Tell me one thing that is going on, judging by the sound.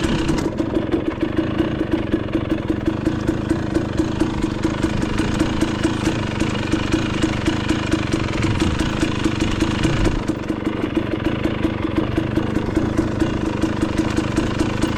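Tyres crunch over a rocky dirt trail.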